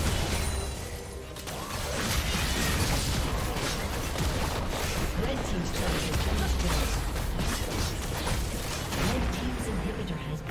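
Magic blasts and weapon hits clash rapidly in a chaotic battle.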